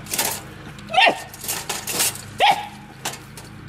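A small dog yelps excitedly.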